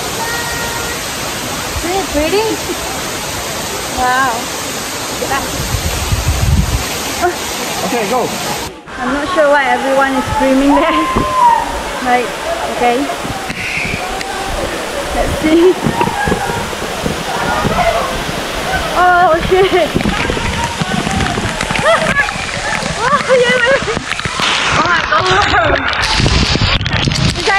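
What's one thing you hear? A young woman talks excitedly close to the microphone.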